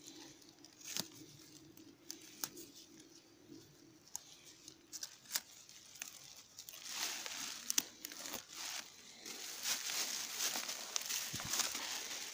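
Dry grass and twigs rustle and crackle close by.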